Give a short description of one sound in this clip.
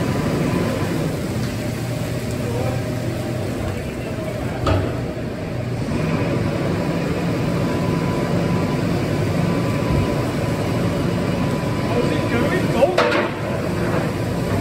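Potatoes tumble and rattle out of a tipping trailer onto a heap.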